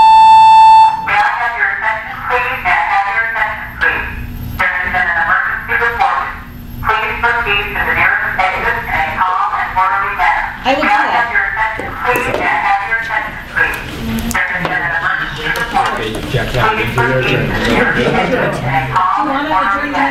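A woman speaks calmly and steadily, heard from across a room.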